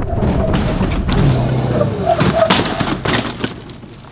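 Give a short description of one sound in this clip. A small cart's motor whirs as it drives over pavement.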